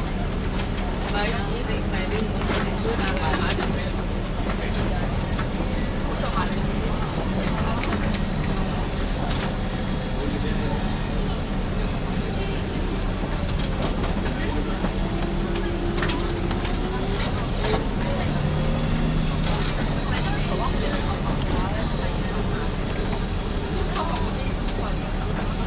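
A bus engine hums steadily from inside the cabin.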